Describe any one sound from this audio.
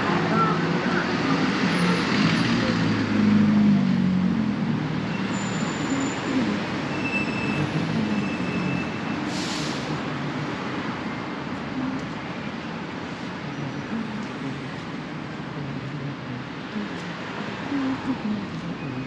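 City street traffic hums steadily outdoors.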